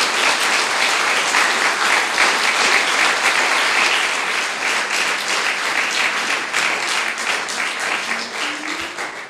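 An audience applauds warmly in a room, then the clapping slowly fades.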